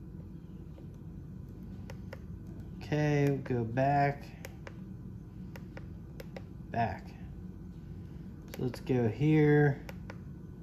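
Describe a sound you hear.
Small plastic buttons click softly under a finger.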